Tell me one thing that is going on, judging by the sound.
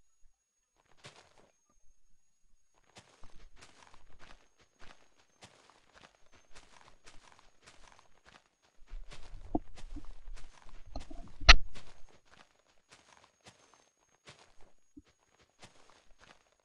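Leaf blocks break with short rustling video game sound effects.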